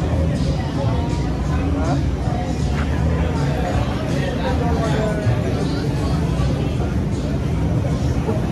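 A crowd of adults chatters in a lively murmur nearby.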